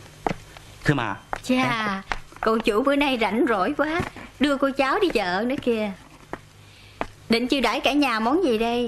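A young woman talks with animation nearby.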